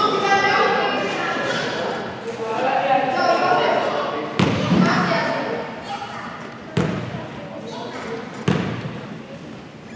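Boys talk and call out in an echoing gym.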